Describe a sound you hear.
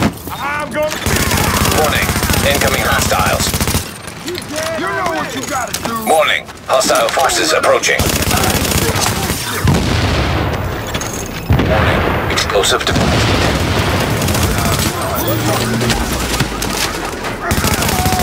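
Rapid gunfire rattles and echoes.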